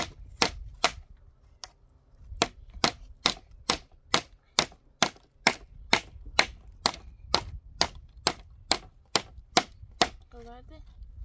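A hammer taps nails into wood in quick, regular blows.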